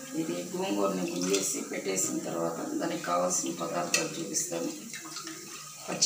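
Water splashes and drips in a pot.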